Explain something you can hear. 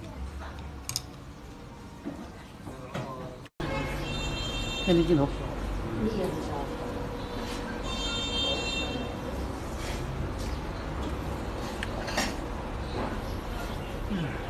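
Diners chatter in the background.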